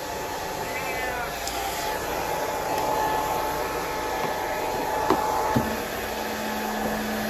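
A hair dryer blows with a steady whooshing roar.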